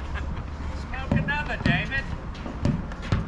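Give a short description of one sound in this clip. Shoes squeak and scuff on a hard court.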